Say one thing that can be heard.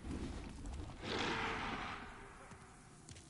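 Flames roar in a burst of fire.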